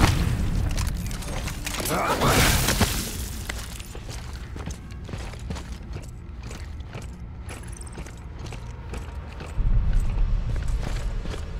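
Heavy boots thud on a metal floor in steady footsteps.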